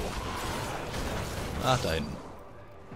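A fire explodes with a loud burst.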